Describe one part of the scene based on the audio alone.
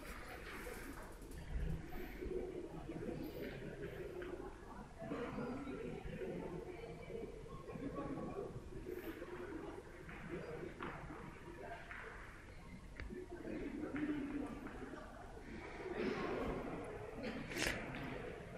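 A crowd murmurs and chatters throughout in a large echoing hall.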